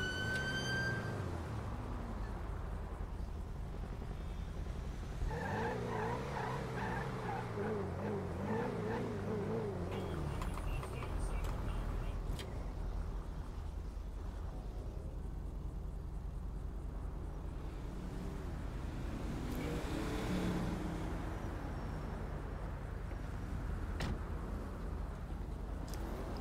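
A car engine rumbles steadily as the car drives.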